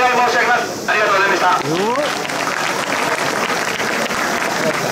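A crowd claps.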